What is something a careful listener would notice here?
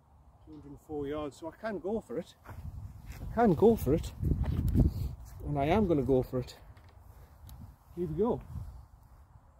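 A young man talks calmly and close by.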